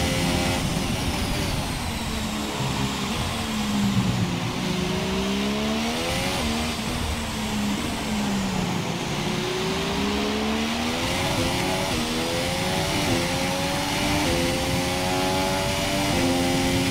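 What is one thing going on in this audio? A racing car engine whines loudly, dropping in pitch as it slows for corners and rising again as it speeds up and shifts gears.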